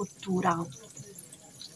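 A woman speaks briefly and calmly close by.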